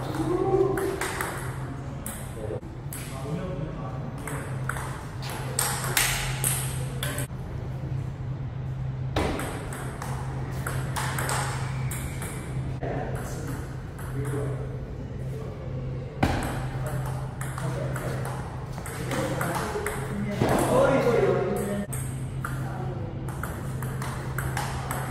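A table tennis ball clicks back and forth off a table and paddles.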